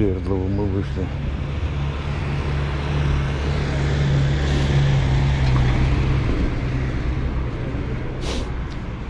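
A bus engine rumbles as it drives past.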